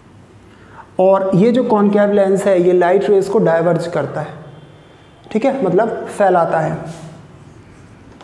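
A young man speaks clearly and calmly, explaining, close by.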